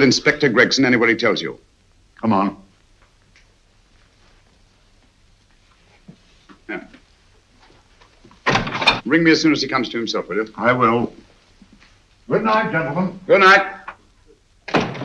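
Men talk nearby in calm, serious voices.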